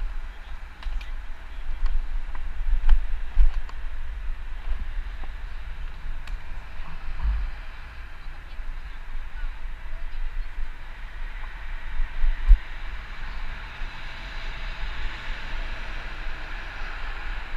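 Wind buffets a microphone outdoors, rumbling and gusting.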